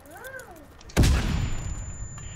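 An explosion booms loudly nearby.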